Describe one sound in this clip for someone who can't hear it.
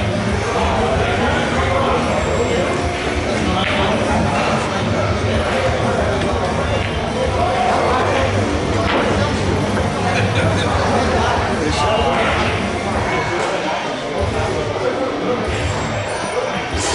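Men talk nearby.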